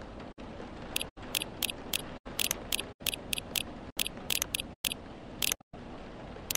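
Soft menu clicks tick in quick bursts.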